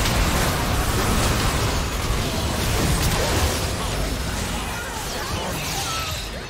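Video game combat effects crackle and clash in a busy battle.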